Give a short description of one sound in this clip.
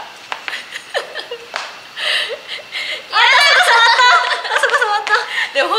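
Young women laugh and giggle close by.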